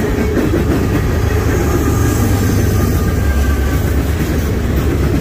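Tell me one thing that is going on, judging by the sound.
A diesel locomotive engine roars as it passes.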